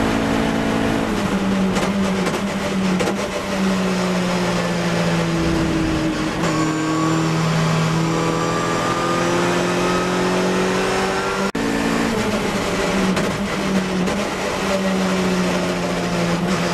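A racing car engine roars loudly from inside the cabin, rising and falling in pitch as it shifts gears.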